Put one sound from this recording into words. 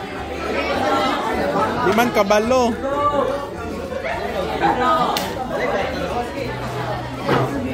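Young people chatter and talk over one another indoors.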